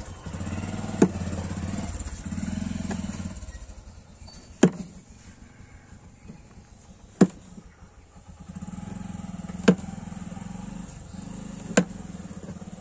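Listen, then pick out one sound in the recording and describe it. A hammer strikes a metal chisel with sharp, ringing taps every few seconds.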